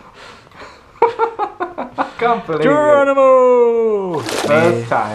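A second young man shouts and laughs excitedly close to a microphone.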